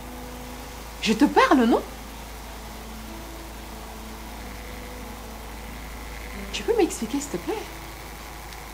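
A young woman speaks emotionally, close by.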